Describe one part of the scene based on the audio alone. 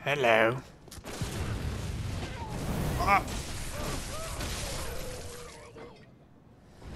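Blades slash and clash in a fight.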